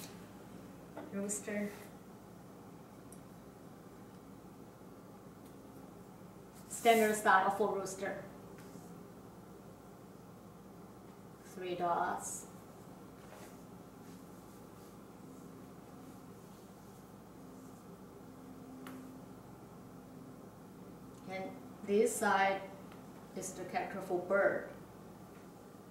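A woman speaks calmly nearby, in short phrases with pauses.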